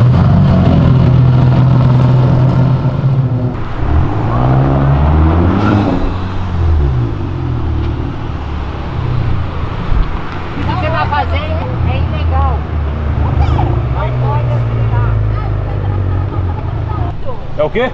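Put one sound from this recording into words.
A car engine rumbles loudly and deeply close by.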